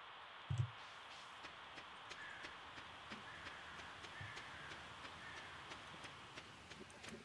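Light footsteps tap steadily on the ground.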